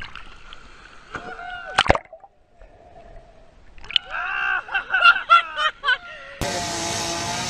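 Water splashes and sloshes around a large whale.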